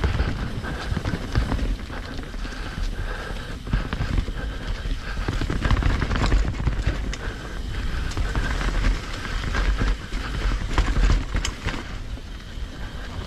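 Wind buffets past the rider, roaring low.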